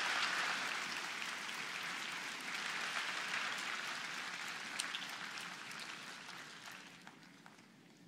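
A crowd applauds in a large hall, fading away.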